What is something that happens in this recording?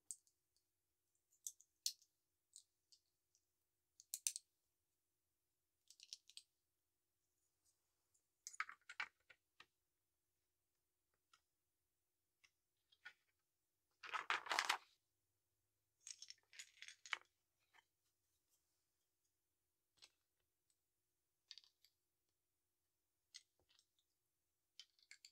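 Plastic toy bricks click and rattle in handling, close up.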